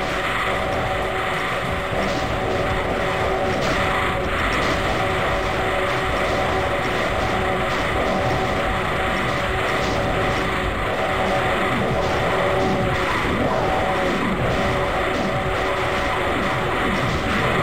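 Fireballs whoosh and burst in rapid, constant bursts.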